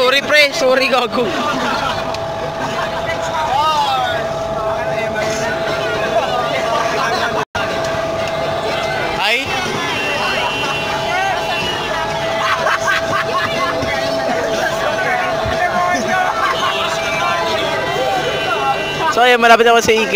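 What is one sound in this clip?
A crowd of young men and women chatter and call out loudly all around.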